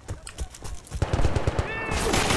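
Rapid rifle gunfire rattles loudly.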